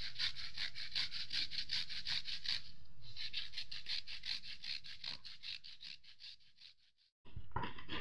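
Cheese scrapes rhythmically against a hand grater.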